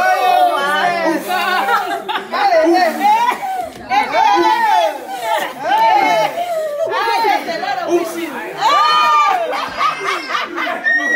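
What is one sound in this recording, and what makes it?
A group of men and women sing together close by.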